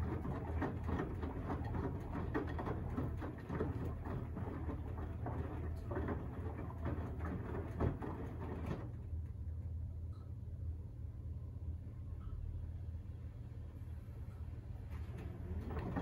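A washing machine drum turns with a steady low hum.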